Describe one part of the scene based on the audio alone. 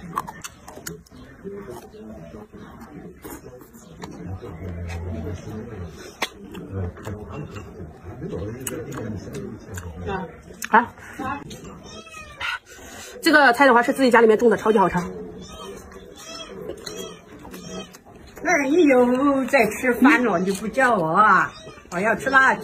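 A young woman chews and slurps food close by.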